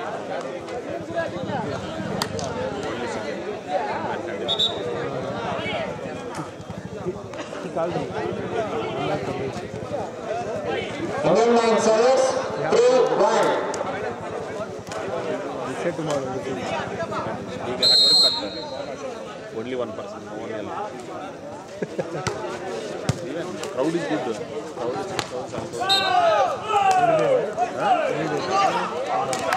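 A crowd of spectators chatters and cheers loudly outdoors.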